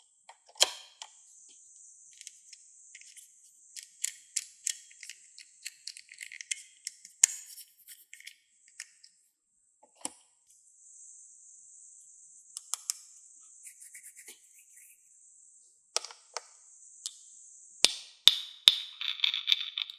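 Plastic toy pieces click and tap against each other.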